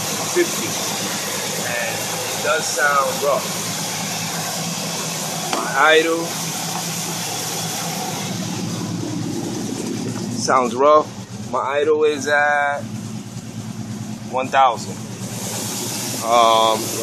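A small-block V8 engine idles.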